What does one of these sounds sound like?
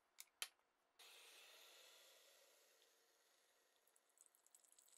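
Hot water pours from a kettle into a metal filter.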